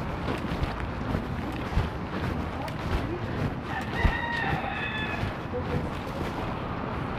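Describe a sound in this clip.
Rain patters steadily on a canopy outdoors.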